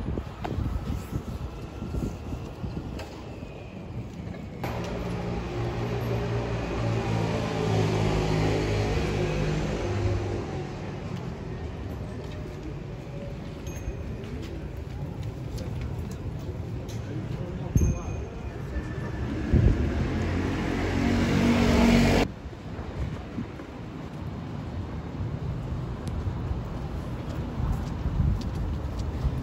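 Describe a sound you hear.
Footsteps walk along a paved street outdoors.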